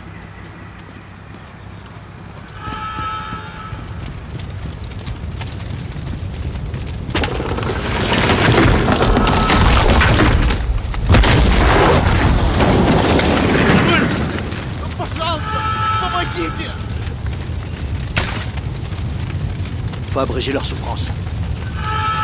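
Fires roar and crackle nearby.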